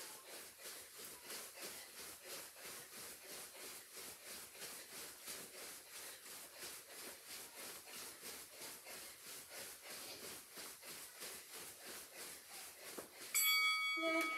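Feet thump softly and rhythmically on a carpeted floor as a woman hops.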